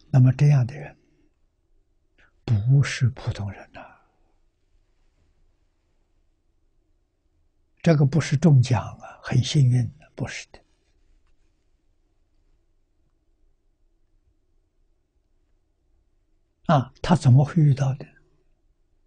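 An elderly man speaks calmly close to a microphone, in short phrases with long pauses.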